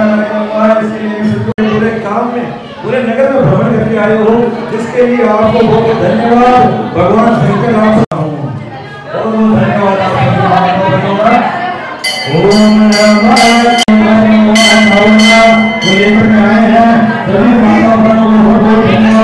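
An older man sings loudly into a microphone through a loudspeaker.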